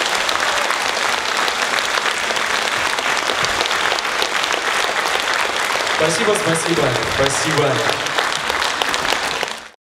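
A crowd applauds steadily in a large hall.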